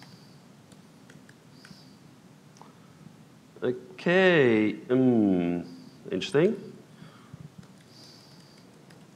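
Laptop keys click softly.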